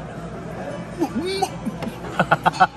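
A young woman exclaims in delight close by.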